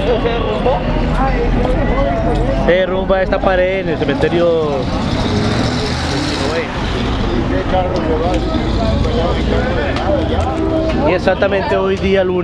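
A crowd of men and women talk loudly and excitedly close by, outdoors.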